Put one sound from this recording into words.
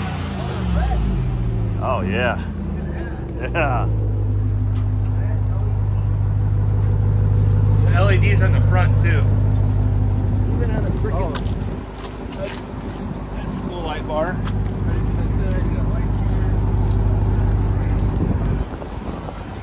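A truck engine idles with a deep, steady rumble.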